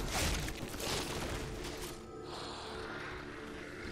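An energy blast bursts with a crackling explosion.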